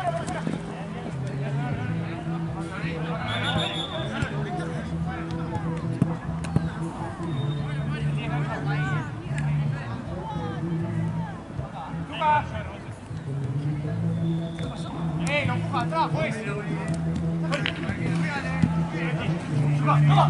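Players shout and call to each other across an open field.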